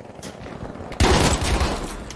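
A rifle fires a loud, close shot.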